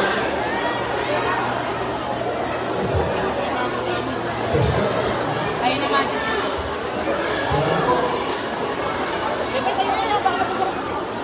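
A crowd of people chatters close by.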